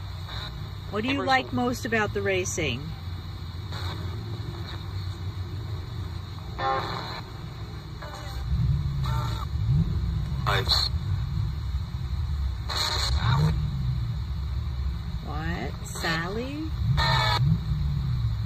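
A small radio plays brief snatches of broadcasts while its dial is changed.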